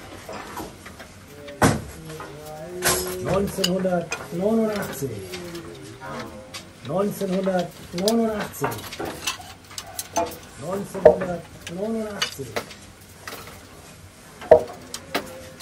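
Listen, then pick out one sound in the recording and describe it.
Wooden boards knock and clatter as they are handled.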